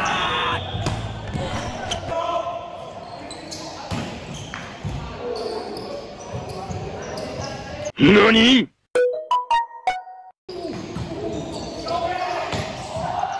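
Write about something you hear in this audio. A volleyball is struck with sharp slaps in an echoing gym.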